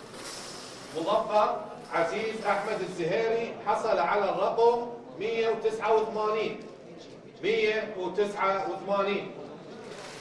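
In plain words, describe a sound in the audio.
A man reads out announcements through a microphone in a large echoing hall.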